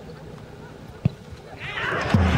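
A football is kicked hard with a thud.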